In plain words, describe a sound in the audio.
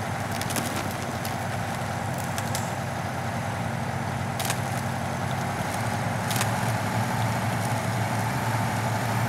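A heavy truck engine roars steadily as it labours uphill.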